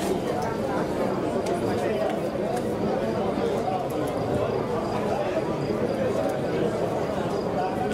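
A large outdoor crowd murmurs and chatters steadily.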